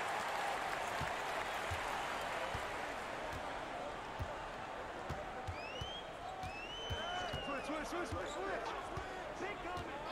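A basketball bounces rhythmically on a hardwood floor.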